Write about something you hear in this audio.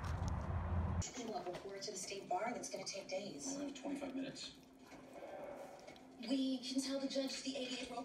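A dog squeaks a rubber toy in its mouth.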